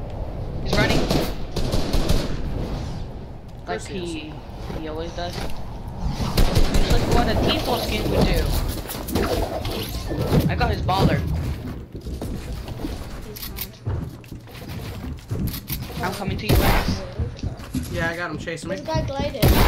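Game gunshots and building clatter go off in quick bursts.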